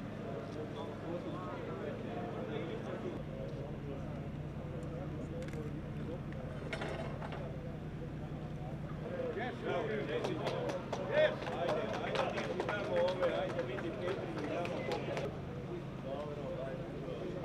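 A crowd of men talks and shouts nearby.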